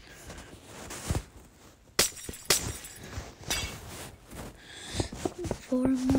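Glass blocks clink softly as they are placed.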